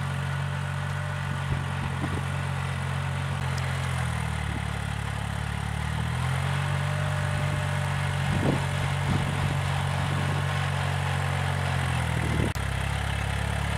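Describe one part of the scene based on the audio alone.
A rotary tiller churns through soil with a rough grinding noise.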